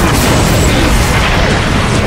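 A large explosion booms and roars.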